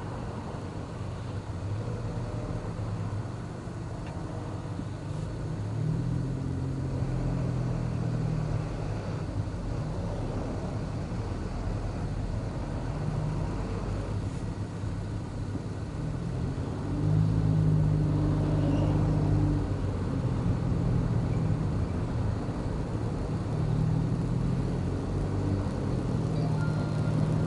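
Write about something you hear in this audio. A car engine hums low and steady, heard from inside the car, rising in pitch now and then.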